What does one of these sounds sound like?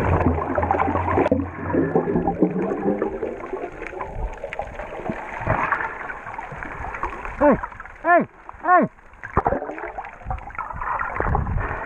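Air bubbles gurgle and rush underwater close by.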